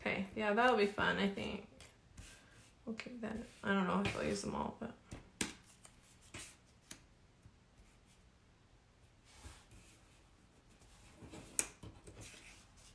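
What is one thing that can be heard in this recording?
Paper rustles and slides as hands arrange it.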